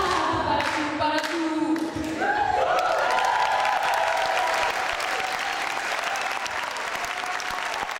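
A young woman sings a solo line into a microphone over the group.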